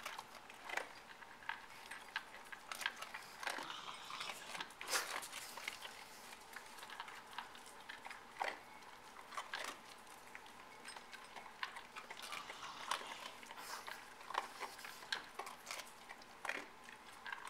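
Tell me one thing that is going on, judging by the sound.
Kibble rattles against metal bowls as small terriers eat.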